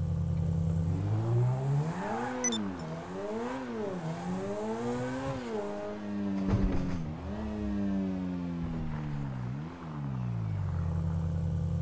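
A sports car engine revs up through the gears.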